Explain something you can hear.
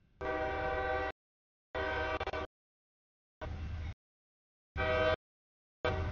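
A train horn blows in a series of loud, repeated blasts close by.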